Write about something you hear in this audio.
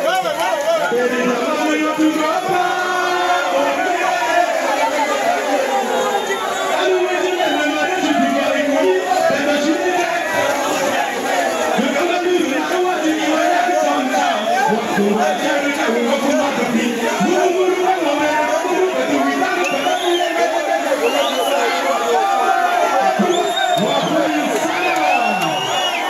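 A young man raps loudly into a microphone through loudspeakers.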